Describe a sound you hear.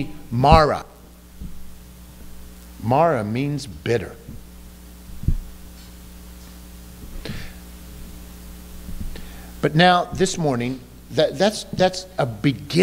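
A middle-aged man speaks slowly and deliberately into a microphone, with long pauses, in a room with a slight echo.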